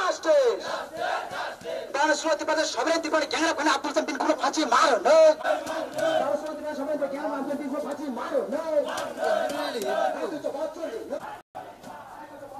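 A crowd of marchers chants loudly outdoors.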